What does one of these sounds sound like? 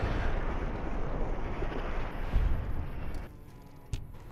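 A sharp energy blast crackles and fizzes loudly, then dies away.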